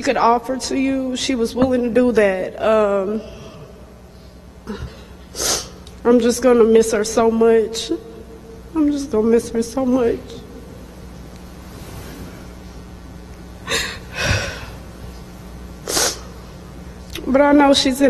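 A woman speaks calmly through a microphone, with pauses, in an echoing hall.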